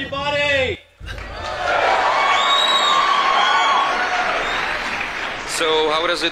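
A crowd applauds and cheers outdoors.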